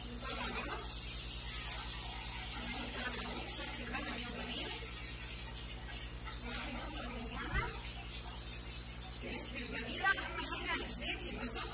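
A woman talks calmly, close by.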